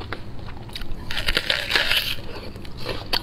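A raw onion crunches loudly as a woman bites into it.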